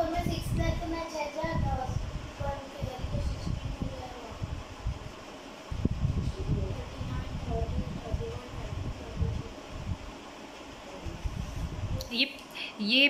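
A teenage boy answers calmly close by.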